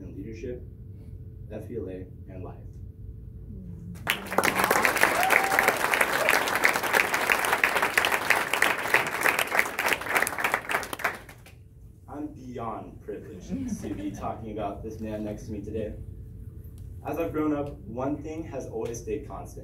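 A young man speaks to a room through a microphone.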